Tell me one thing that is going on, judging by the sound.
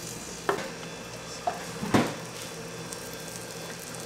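A metal pan clatters as it is shifted on a counter.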